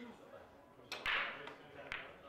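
A cue strikes a billiard ball with a sharp tap.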